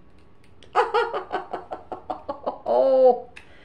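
A woman laughs in short bursts.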